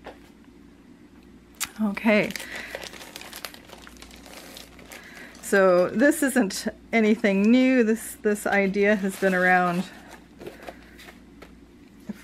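Sheets of plastic and paper rustle and crinkle as they are handled.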